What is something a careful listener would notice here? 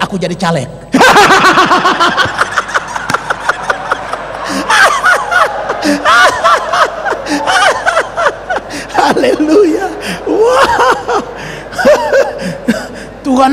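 A large crowd laughs loudly.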